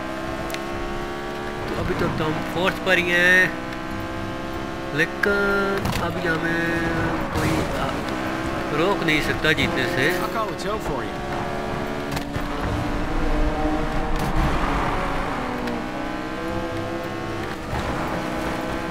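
Tyres screech as a car skids sideways.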